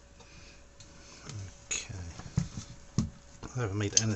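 Light knocks and scrapes sound as a metal case is shifted by hand.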